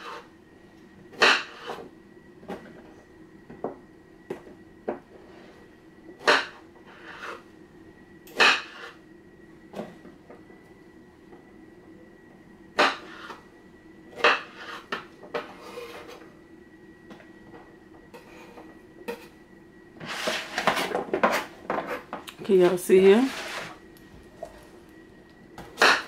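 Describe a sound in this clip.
A knife taps sharply on a cutting board as vegetables are sliced.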